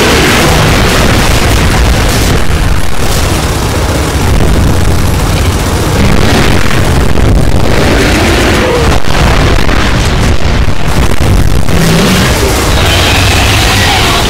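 Fires roar and crackle.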